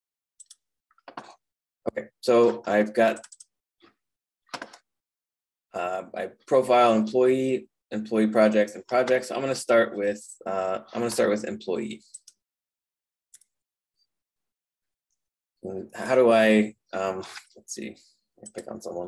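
A man speaks calmly into a microphone, heard as if over an online call.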